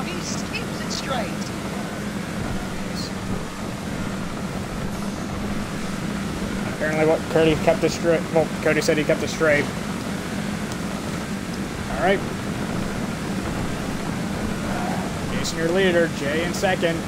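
A race car engine roars steadily.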